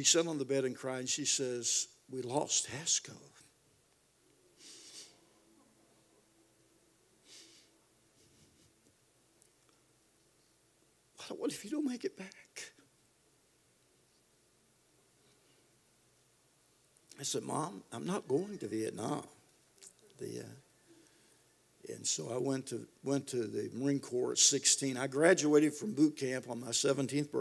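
An elderly man speaks into a microphone with pauses, his voice carried over a loudspeaker.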